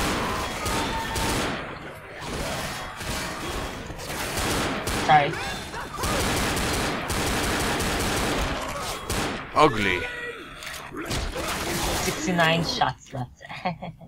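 Zombies growl and shriek close by.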